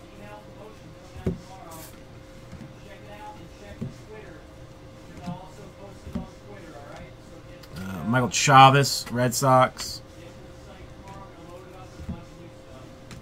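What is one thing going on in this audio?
Trading cards softly flick and rustle as they are shuffled by hand.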